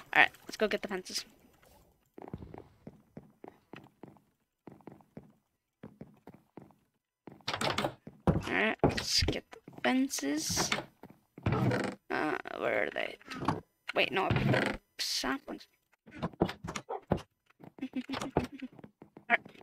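Footsteps thud on wooden planks.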